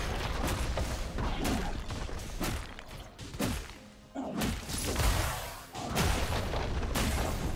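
Game characters clash with bursts of spell and hit effects.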